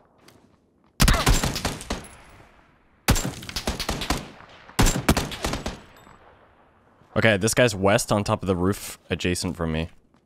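Rifle shots crack in quick bursts, with a sharp ringing echo.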